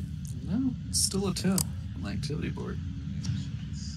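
A flashlight clicks off.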